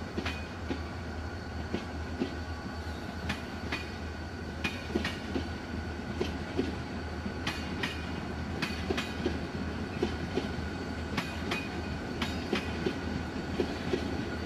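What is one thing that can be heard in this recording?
A passenger train rolls past with a steady rumble.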